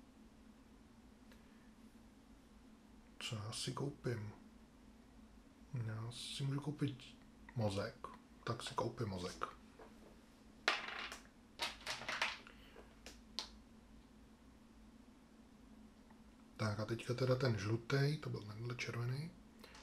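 Small plastic game pieces click as they are set down on a table.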